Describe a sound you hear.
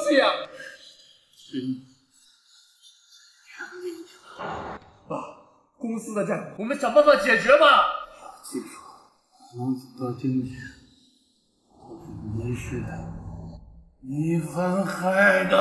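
An older man speaks weakly and haltingly, close by.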